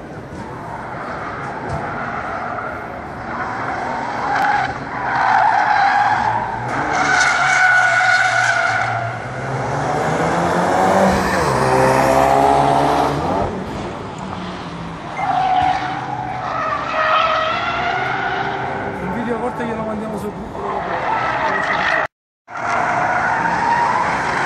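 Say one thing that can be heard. A car engine revs hard and roars as it drifts around a track.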